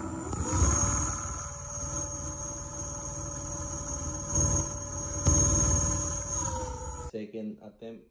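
An electric motor whines steadily at speed, then winds down.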